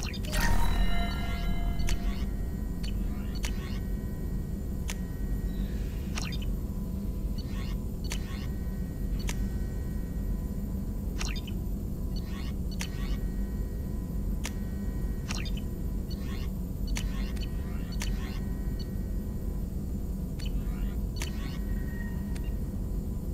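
Short electronic menu clicks sound now and then.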